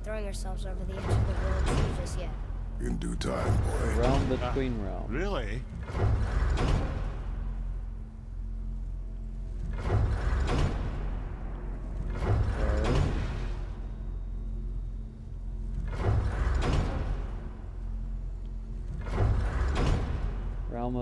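A heavy stone mechanism rumbles and turns in repeated bursts.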